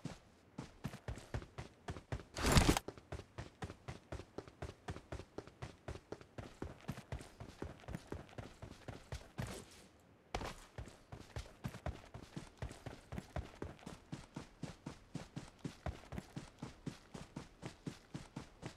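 Quick footsteps run steadily over hard ground.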